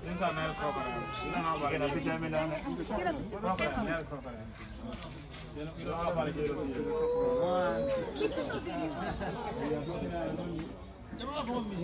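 A crowd of men and women talk excitedly close by, outdoors.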